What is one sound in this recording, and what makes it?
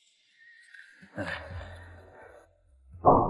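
A young man speaks quietly and tensely.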